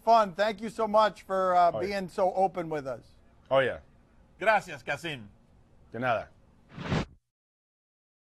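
A man speaks with animation over a microphone.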